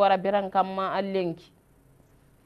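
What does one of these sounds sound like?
A person speaks into a microphone.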